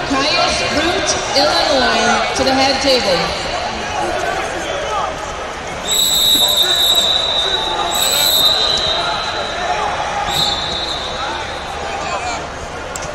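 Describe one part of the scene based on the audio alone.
A crowd chatters and shouts in a large echoing hall.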